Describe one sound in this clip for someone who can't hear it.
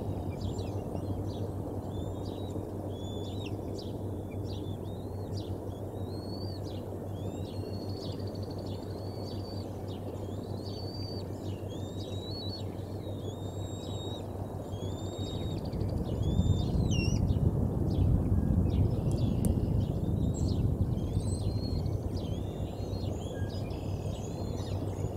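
A young eagle chirps in high, thin peeps.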